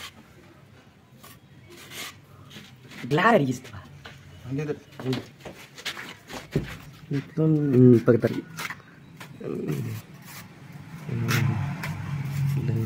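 A trowel scrapes wet plaster on a wall.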